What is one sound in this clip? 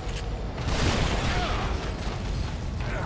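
A monster roars loudly.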